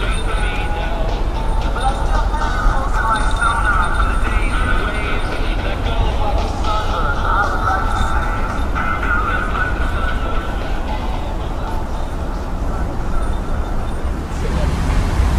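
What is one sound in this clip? A boat engine rumbles and drones steadily.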